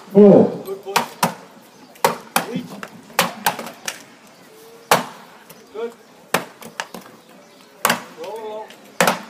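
An axe chops into a wooden block with sharp, regular thuds outdoors.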